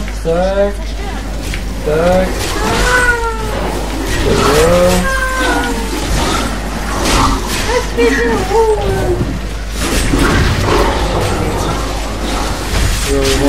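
Game monsters screech and howl.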